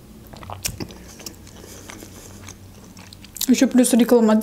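A young woman chews food with soft, wet mouth sounds.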